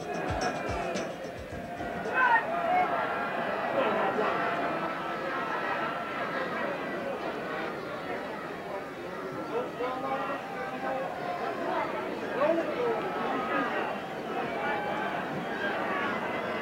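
A crowd shouts and cheers excitedly.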